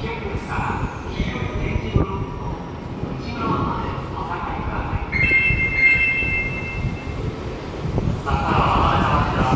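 A train rumbles and hums nearby in an echoing underground space.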